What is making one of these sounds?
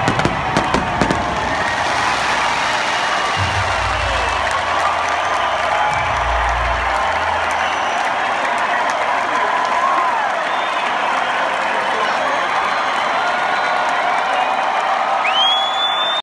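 A large crowd cheers and screams outdoors.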